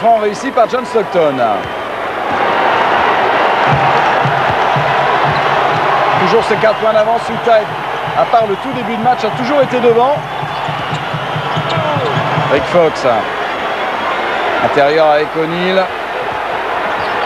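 A large crowd cheers and roars in an echoing arena.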